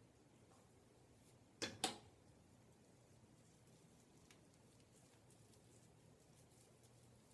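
Fingers softly rustle through hair close by.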